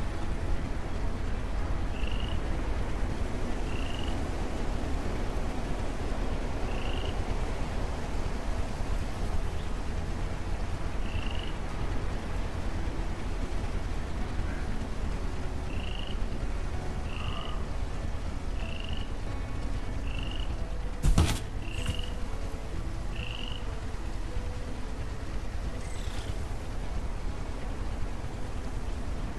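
A large walking machine hums steadily at idle.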